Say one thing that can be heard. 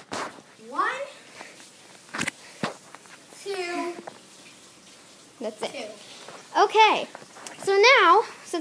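A young child squeals and shouts excitedly close by.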